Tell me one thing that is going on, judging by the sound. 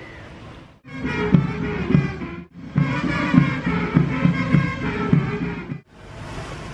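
A man calls out commands loudly through a loudspeaker, outdoors.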